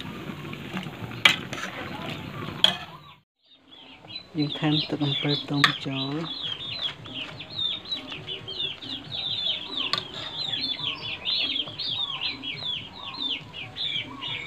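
A metal ladle scrapes and clinks against a pot.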